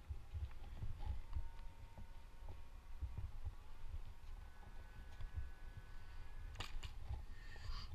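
Branches and twigs rustle and snap close by.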